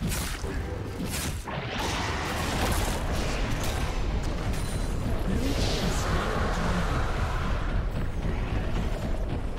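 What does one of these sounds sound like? Fantasy battle effects crackle and boom as creatures fight a large monster.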